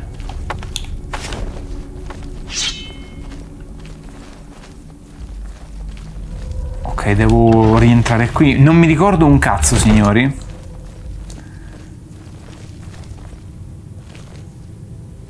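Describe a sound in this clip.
Footsteps thud softly on stone.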